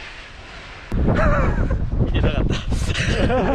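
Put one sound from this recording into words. A man speaks close by, outdoors in wind.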